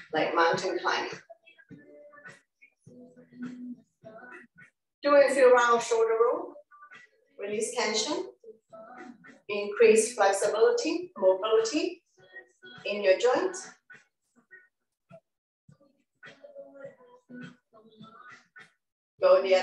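A woman speaks calmly into a microphone, giving instructions.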